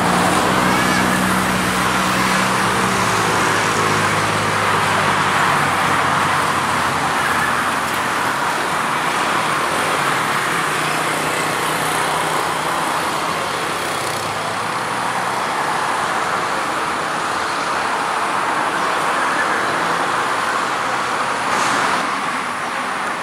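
A diesel locomotive engine rumbles as a train rolls slowly closer.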